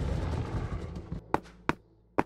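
A crowd of game creatures clanks and rumbles loudly.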